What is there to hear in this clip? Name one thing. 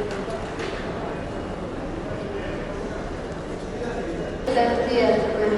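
Luggage trolley wheels rattle and roll over a hard floor.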